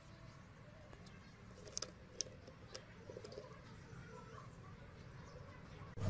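Small plastic parts click and tap against each other.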